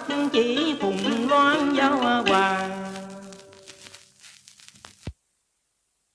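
A woman sings a slow melody.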